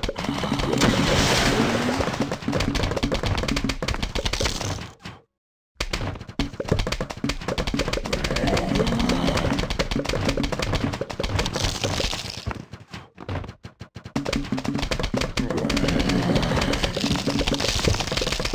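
Rapid popping shots fire over and over in a video game.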